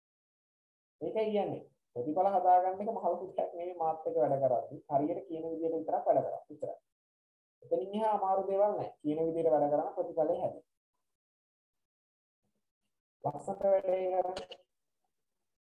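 A young man speaks calmly through an online call, in short bursts with pauses.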